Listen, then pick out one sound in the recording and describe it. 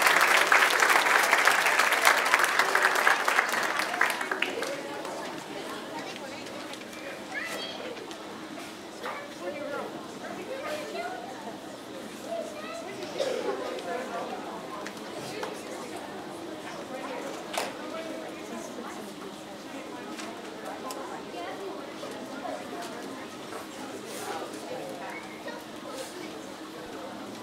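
An audience in a large hall murmurs and chatters.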